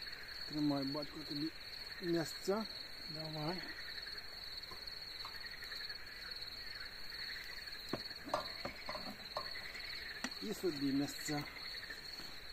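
A man talks calmly nearby outdoors.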